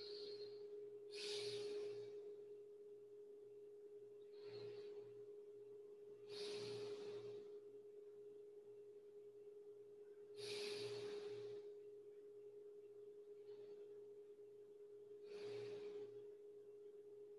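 A young man breathes out slowly and deeply.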